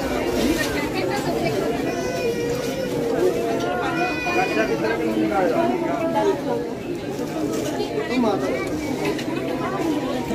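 A large crowd chatters and calls out all around.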